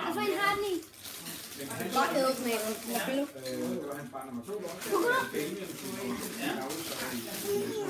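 Young boys talk and shout excitedly close by.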